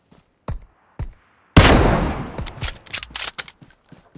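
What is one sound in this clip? A bolt-action sniper rifle fires a single loud shot.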